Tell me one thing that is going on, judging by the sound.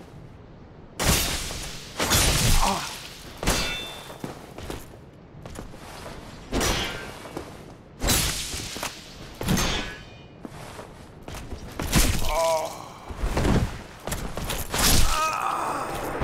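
Metal weapons clash and strike armour in sharp, heavy blows.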